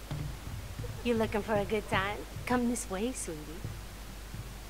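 A young woman speaks in a flirtatious, inviting voice.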